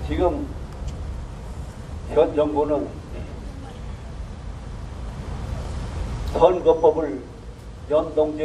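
An elderly man speaks into a microphone in short bursts, heard through loudspeakers outdoors.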